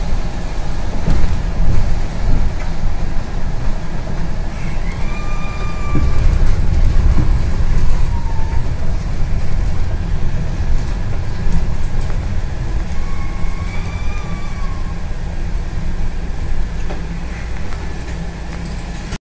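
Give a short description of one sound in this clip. A bus engine rumbles low and steady from inside the moving bus.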